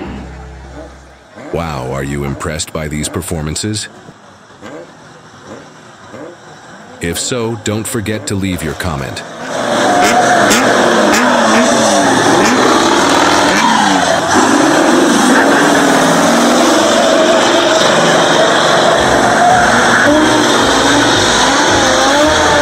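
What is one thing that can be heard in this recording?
A diesel tanker truck engine revs hard.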